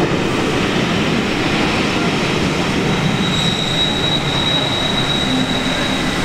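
A diesel locomotive's engine throbs loudly close by.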